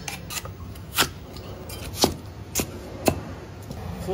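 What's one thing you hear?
A cleaver chops through a root onto a wooden board.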